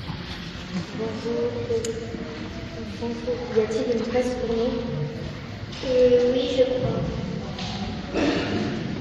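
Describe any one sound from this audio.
A second young girl speaks into a microphone in a large echoing hall.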